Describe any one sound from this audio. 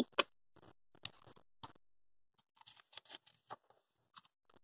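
A book page rustles as it turns.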